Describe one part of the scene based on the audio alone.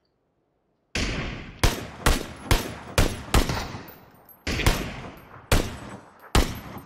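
Rifle shots crack one after another, loud and sharp.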